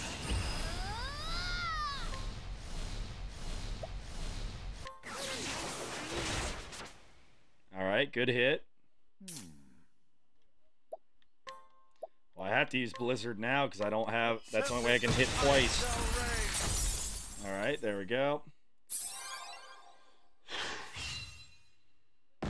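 Game battle effects crash and whoosh.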